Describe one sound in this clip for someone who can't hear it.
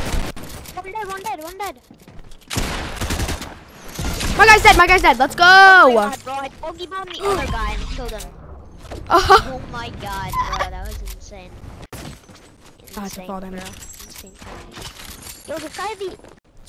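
A boy talks excitedly into a microphone.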